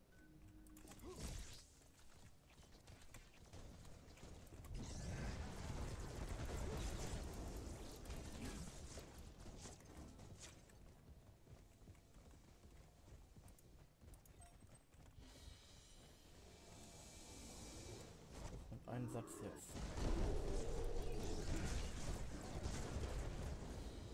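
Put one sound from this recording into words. Magic blasts and explosions crackle and boom in a game battle.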